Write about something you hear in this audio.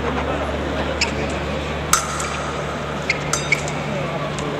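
Fencing blades clink sharply against each other.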